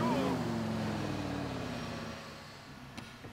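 A car engine rumbles and winds down.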